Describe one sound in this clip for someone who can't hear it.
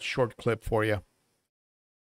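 An older man speaks calmly and close into a microphone.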